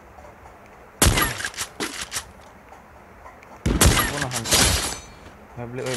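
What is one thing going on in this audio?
A sniper rifle fires loud, sharp shots.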